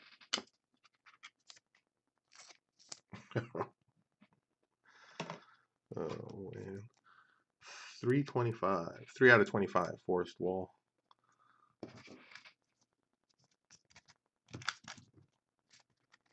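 Trading cards rustle and flick as they are handled close by.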